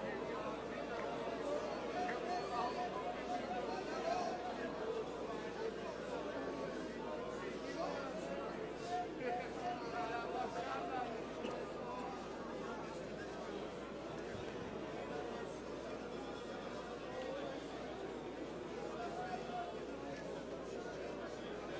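A crowd of men and women pray aloud at once in a large echoing hall.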